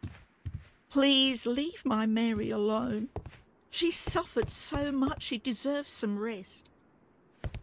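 A woman speaks pleadingly.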